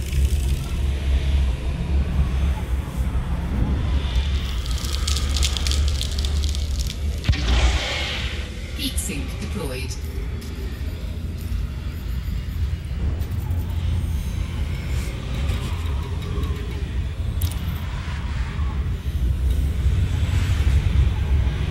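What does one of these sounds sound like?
A spaceship's engine hums low and steady.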